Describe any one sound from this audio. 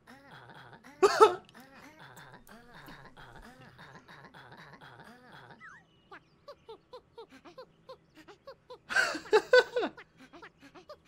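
A young man laughs close to a microphone.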